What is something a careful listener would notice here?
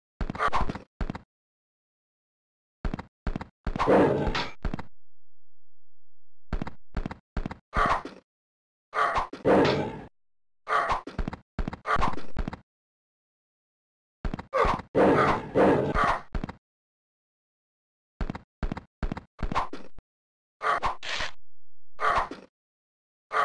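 A man talks with animation through a microphone, in short bursts.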